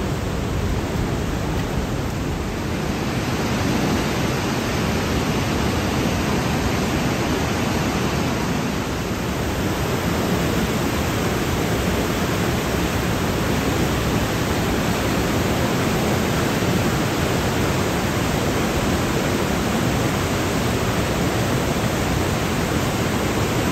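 A mountain river rushes and roars loudly through a narrow rocky gorge.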